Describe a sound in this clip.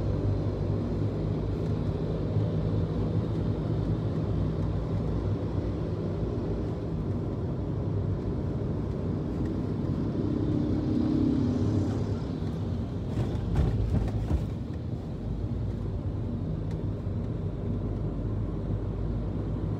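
Tyres roll on smooth asphalt.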